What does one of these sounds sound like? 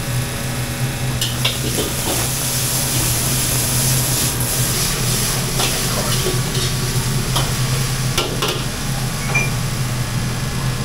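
Food sizzles in hot oil.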